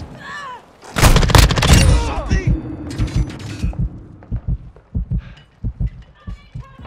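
Gunfire bursts loudly and rapidly, with sharp shots.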